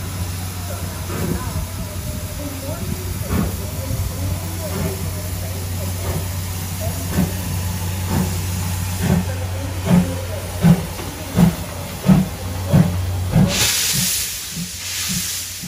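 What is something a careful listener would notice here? A steam locomotive chuffs as it pulls away, its exhaust beats coming faster.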